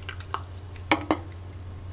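A drink pours from a can into a mug.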